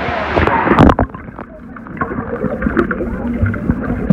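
Sound turns muffled and rumbling underwater.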